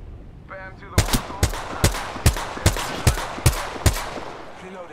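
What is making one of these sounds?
A rifle fires a string of sharp, evenly spaced shots.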